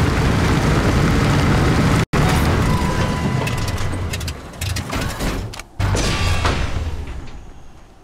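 A heavy tank engine rumbles and roars.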